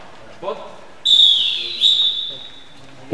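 Sports shoes squeak loudly on the hall floor.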